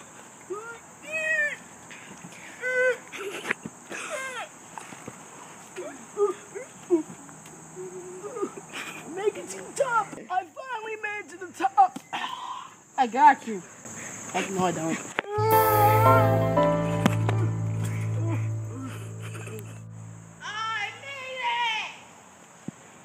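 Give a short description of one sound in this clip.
A young boy talks and exclaims with animation, close by.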